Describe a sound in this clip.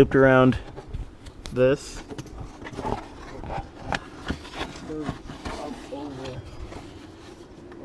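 Hard plastic parts knock and rattle as hands handle them up close.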